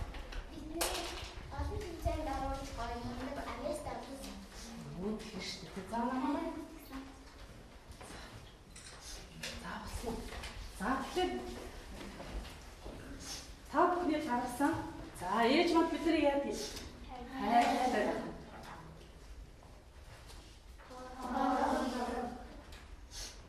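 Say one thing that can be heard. A woman speaks with animation to a class.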